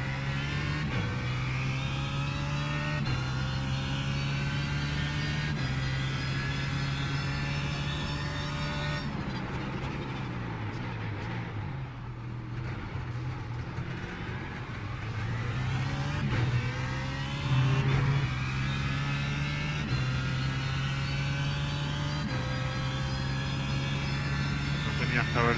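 A racing car engine roars and revs up through the gears, shifting sharply.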